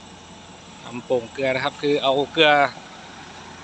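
A man talks outdoors nearby.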